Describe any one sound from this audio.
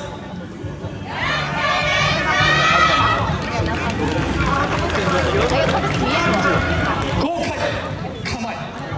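A group of young women and men chant and shout in unison outdoors.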